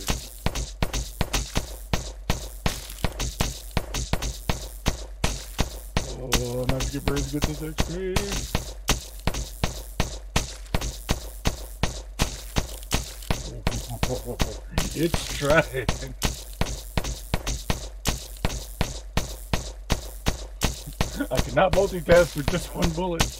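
Rapid electronic shots fire in a quick, steady rhythm.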